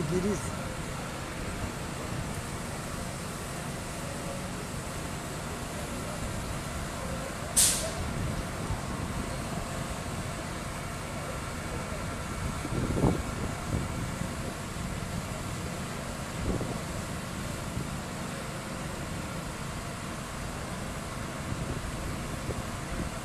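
A fire engine's motor idles nearby with a steady low rumble.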